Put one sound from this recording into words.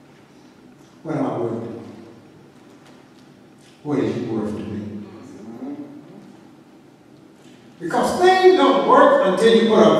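A man speaks into a microphone in a large echoing hall, in bursts with pauses.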